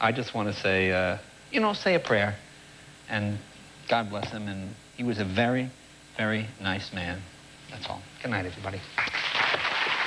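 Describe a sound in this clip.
A middle-aged man speaks calmly and sombrely into a microphone.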